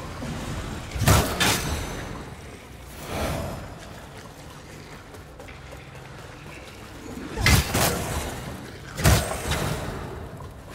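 Weapon blows strike and clang sharply several times.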